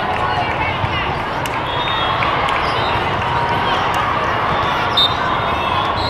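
Squeaky sneakers chirp on a hard court floor.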